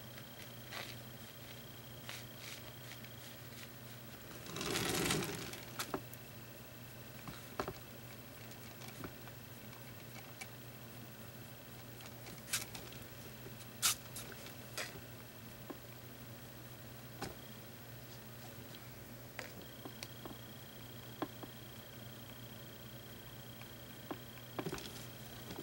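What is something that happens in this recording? A brush taps and scrapes softly on paper.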